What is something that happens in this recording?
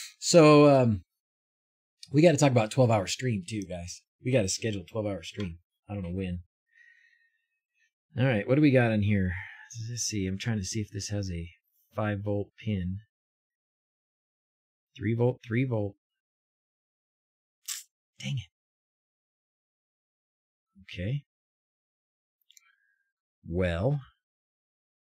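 A man speaks casually and close to a microphone, in short bursts with pauses.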